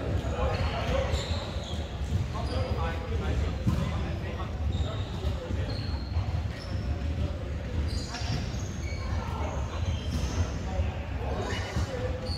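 Young men and women talk and call out across a large echoing hall.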